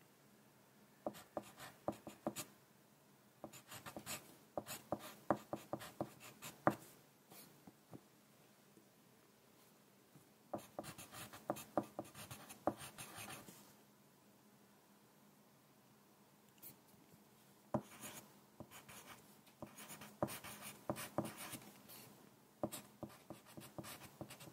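A pencil scratches and taps on paper in short bursts, close up.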